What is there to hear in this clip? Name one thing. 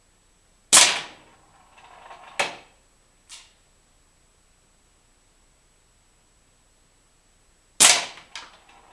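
A pellet smacks sharply into a wooden target.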